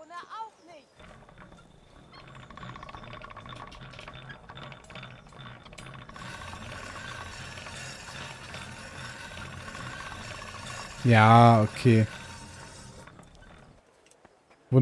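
A grindstone grinds steadily against a metal blade.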